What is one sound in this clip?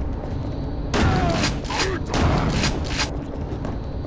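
A shotgun fires several loud blasts.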